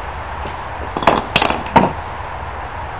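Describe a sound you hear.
Wooden planks knock and scrape against each other on a paved ground.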